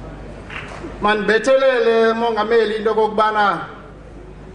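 An elderly man sings loudly through a microphone.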